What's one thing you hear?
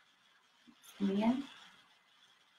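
A young woman speaks softly and calmly close by.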